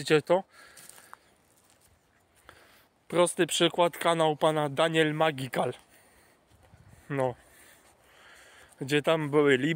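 A young man talks calmly and close to a microphone.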